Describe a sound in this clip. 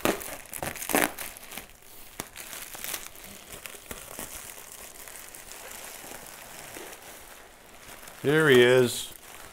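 Plastic bubble wrap crinkles and rustles as hands unwrap it.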